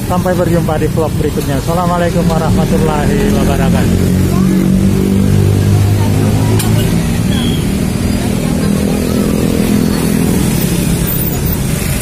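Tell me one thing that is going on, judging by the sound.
Motorbike engines hum and rumble in passing street traffic.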